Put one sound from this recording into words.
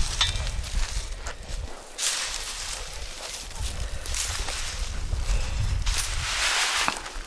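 Wind rumbles outdoors.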